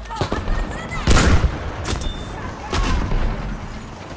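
A gunshot blasts and echoes in a tight space.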